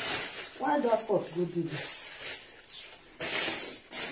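A plastic bag rustles.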